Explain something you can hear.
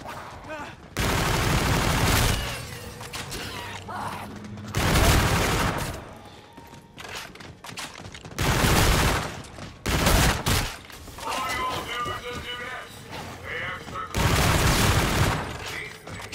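Gunfire bursts out loudly in rapid volleys.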